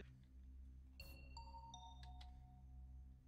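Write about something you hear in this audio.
A game alarm blares as a dead body is reported.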